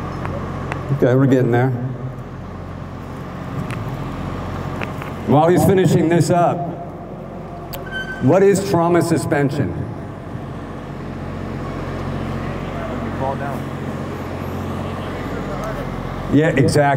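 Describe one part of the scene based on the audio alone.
A middle-aged man speaks calmly into a handheld radio, heard up close.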